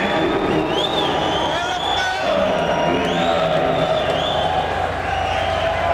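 A man shouts into a microphone through loudspeakers.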